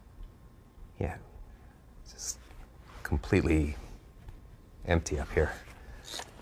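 A man speaks calmly and close by, in short phrases with pauses.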